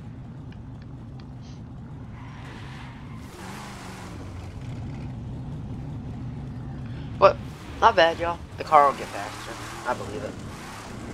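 A car engine rumbles and revs loudly.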